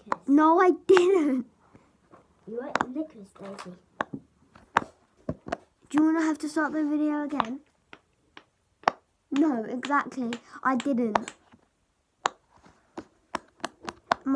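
Plastic bubbles pop under a child's fingers with soft clicks.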